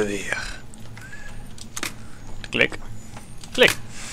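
Metal lock pins click softly as a lock is picked.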